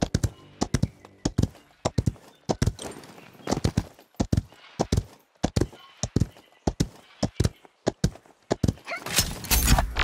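A gun fires rapid repeated shots.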